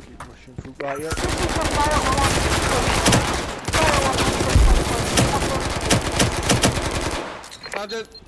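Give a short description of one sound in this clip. Rapid gunfire rattles loudly at close range.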